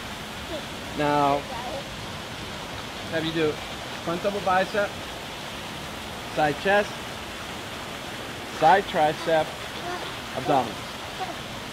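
A man calls out instructions nearby, outdoors.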